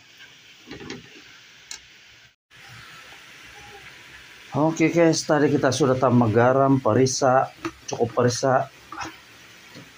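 A spatula scrapes and stirs in a metal pan.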